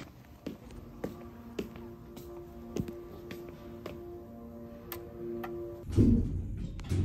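An elevator hums as it moves.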